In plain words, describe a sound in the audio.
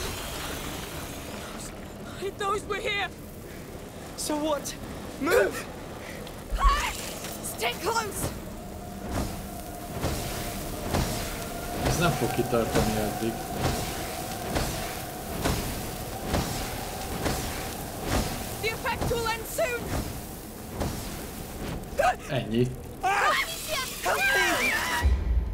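A middle-aged man talks into a microphone.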